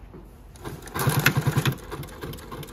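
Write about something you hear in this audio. A sewing machine stitches in a quick, rapid burst.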